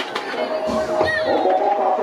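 Bicycle tyres roll off down a ramp.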